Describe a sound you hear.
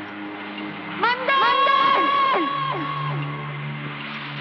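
A young woman cries out loudly in anguish.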